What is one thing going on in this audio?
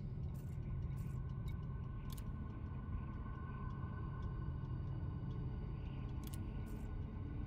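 A spaceship's engines hum low and steady.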